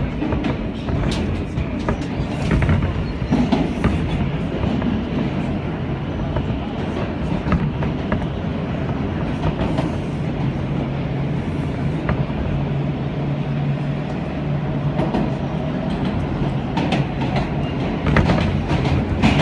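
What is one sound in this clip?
A vehicle engine rumbles and hums steadily from inside the vehicle.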